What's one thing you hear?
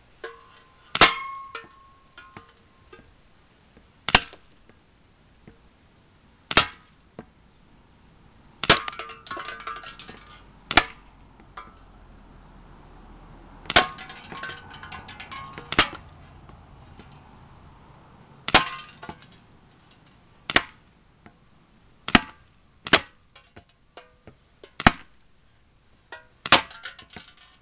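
Pellets hit hanging metal cans with sharp, tinny clanks.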